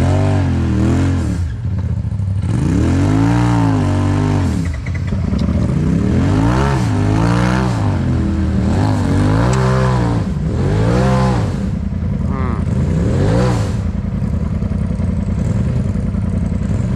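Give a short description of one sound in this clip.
An engine revs up and down repeatedly close by.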